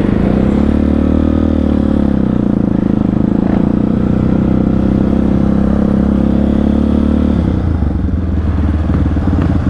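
A dirt bike engine roars as it rides away.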